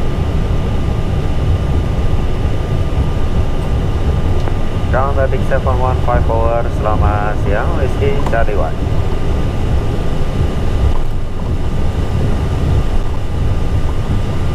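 Jet engines rumble and hum steadily.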